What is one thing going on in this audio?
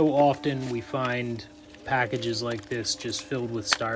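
Cardboard scrapes and rustles as a man handles it.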